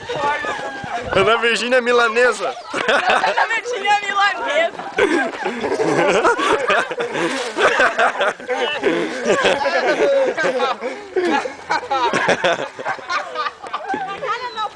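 Several young men shout and laugh excitedly outdoors.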